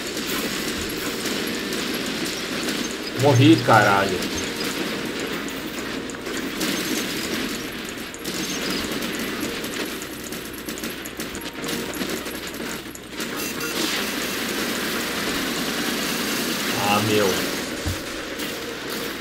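Robot weapons fire in rapid bursts and explosions boom.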